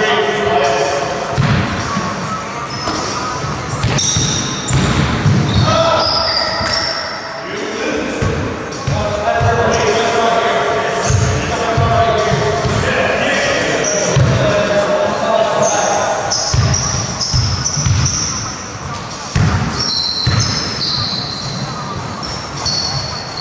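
A basketball bounces with echoing thuds in a large hall.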